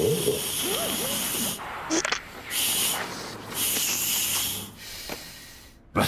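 A dental drill whirs loudly.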